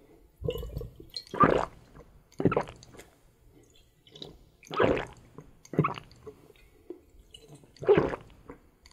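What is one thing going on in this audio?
A man gulps down a drink in loud, close swallows.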